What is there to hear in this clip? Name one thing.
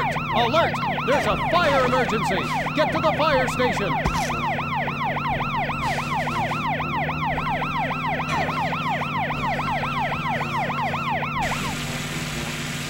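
A police siren wails rapidly up and down, close by.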